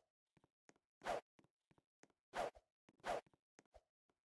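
A sword swooshes through the air.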